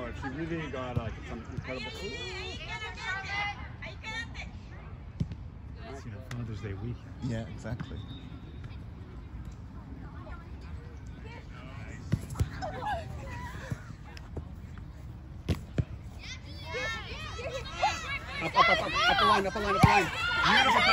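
A soccer ball is kicked with dull thumps.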